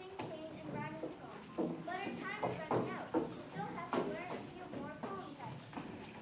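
A young girl speaks into a microphone, heard over loudspeakers in an echoing hall.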